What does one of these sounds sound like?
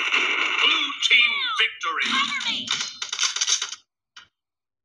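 Gunfire from a video game crackles through a phone's small speaker.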